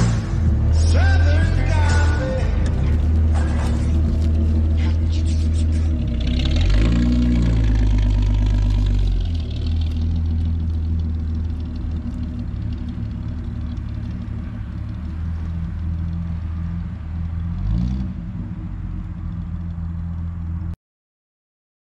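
A car engine rumbles deeply and revs as the car drives away.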